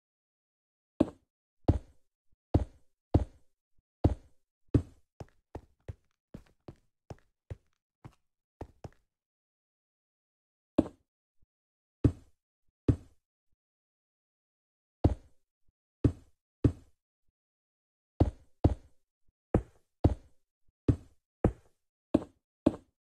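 Bricks are set down one after another with short, dull knocks.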